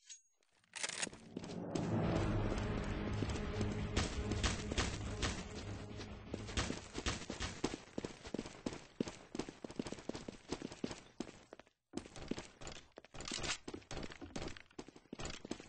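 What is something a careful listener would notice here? Quick footsteps thud steadily along.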